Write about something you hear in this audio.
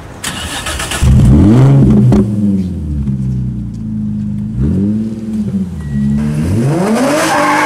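A car exhaust revs sharply, rising and falling in quick bursts.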